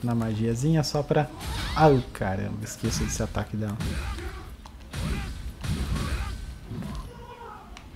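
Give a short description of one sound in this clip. A heavy blade swings and strikes with sharp, clanging hits.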